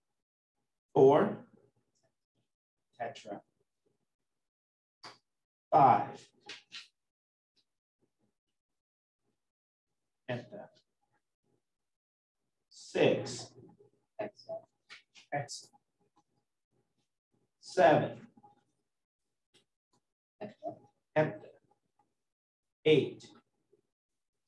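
A man speaks calmly into a microphone in short phrases with long pauses.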